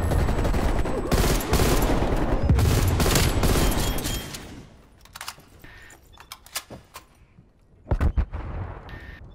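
Rifle shots ring out loudly, one after another.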